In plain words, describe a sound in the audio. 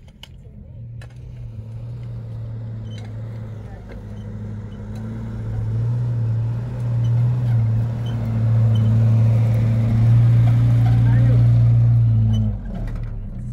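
A pickup truck engine runs with a low rumble, then drops off.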